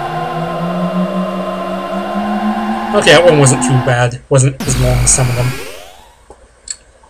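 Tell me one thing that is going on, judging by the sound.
A warbling electronic hum swells and fades.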